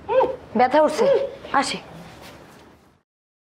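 A woman speaks anxiously nearby.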